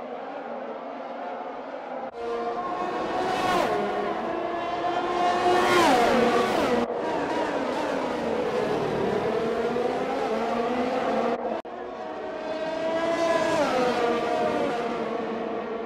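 Racing car engines scream at high revs, rising and dropping in pitch as they shift gears.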